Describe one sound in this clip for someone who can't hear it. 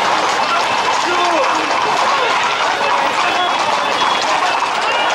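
Horses' hooves clop on pavement.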